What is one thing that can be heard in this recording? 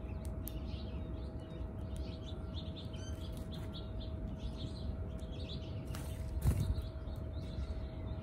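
Small birds chirp and twitter outdoors.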